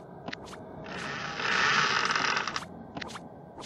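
A heavy door swings open with a rushing whoosh.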